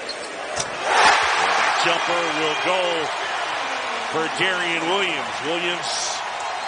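A crowd cheers and roars loudly in a large arena.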